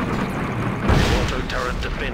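A loud explosion booms and roars.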